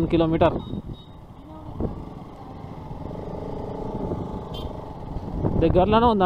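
A motorcycle engine hums steadily while riding slowly.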